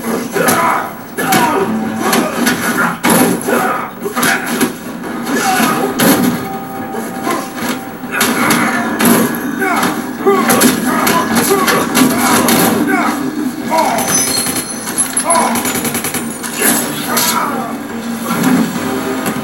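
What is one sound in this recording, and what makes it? Game music plays through a television speaker.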